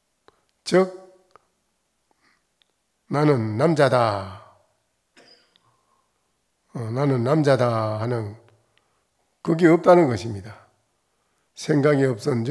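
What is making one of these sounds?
An elderly man speaks calmly and slowly into a microphone, pausing between phrases.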